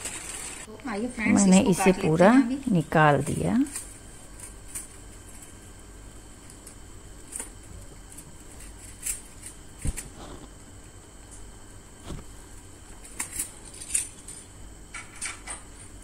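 A knife scrapes and cuts through a firm sheet.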